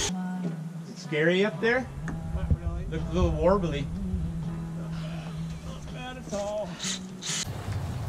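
An older man talks calmly outdoors.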